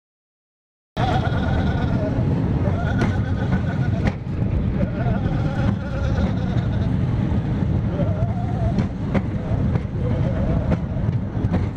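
A roller coaster train clanks steadily up a chain lift.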